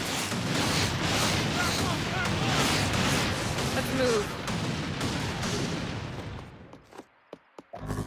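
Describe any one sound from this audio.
Explosions boom and crackle loudly, close by.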